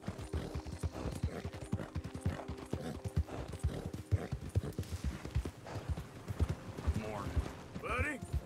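Horse hooves thud rapidly on a dirt path.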